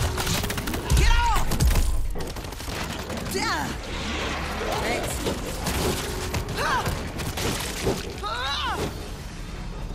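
Creatures shriek and snarl repeatedly.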